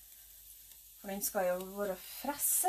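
A woman speaks nearby in a lively, sing-song voice.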